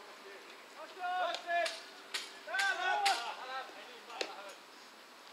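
Men shout calls across an open field.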